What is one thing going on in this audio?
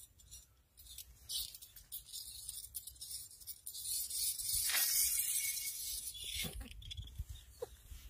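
A thin burning wire fizzes and hisses softly.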